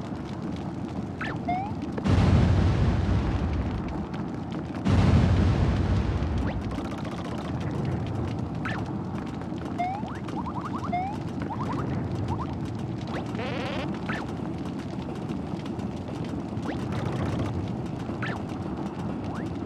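Cheerful video game music plays steadily.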